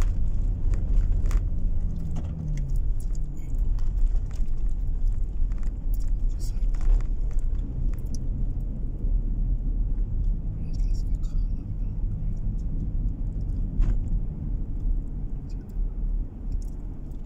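A car engine hums steadily from inside while driving.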